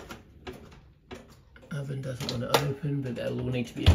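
A metal oven drawer slides open and rattles.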